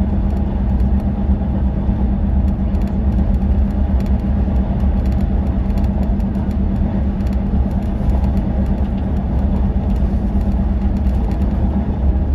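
Tyres hum and roar on the road surface.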